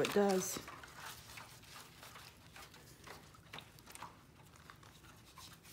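Gloved hands squish and rustle wet paper in a shallow tray of liquid.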